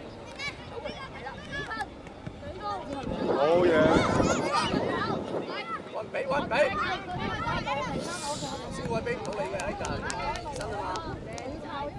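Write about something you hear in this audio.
A football thuds as children kick it.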